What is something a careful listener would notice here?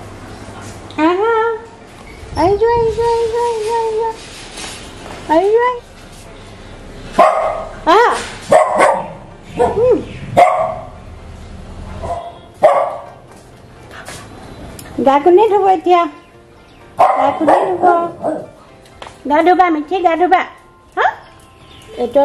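A dog whines and yelps close by in high, wavering cries.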